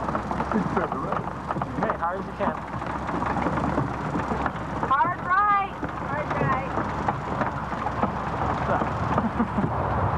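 A small engine rumbles as a car drives along.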